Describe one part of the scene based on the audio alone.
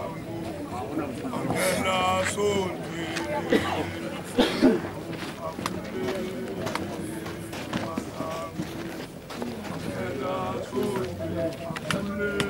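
A group of men sing together nearby.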